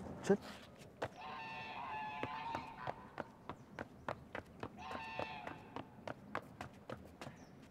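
Boots thud quickly on hard ground as a person runs.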